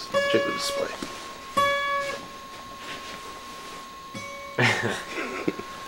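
A guitar string is plucked a few times.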